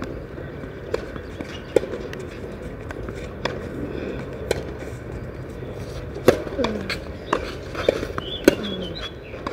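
A tennis ball bounces on a clay court.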